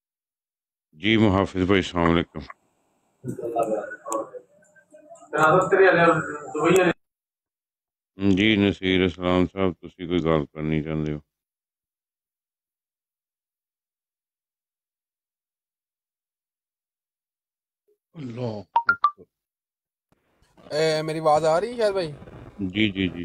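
A middle-aged man speaks through a phone microphone in bursts, with pauses.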